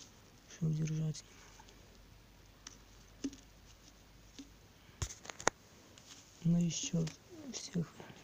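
Metal clip leads click and rattle as a hand handles them.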